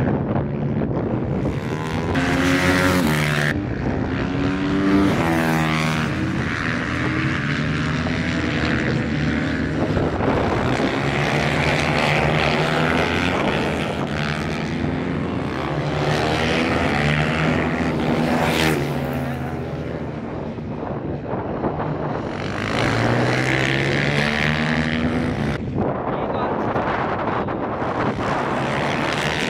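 Small motorcycle engines whine and rev loudly as they race past, rising and falling in pitch.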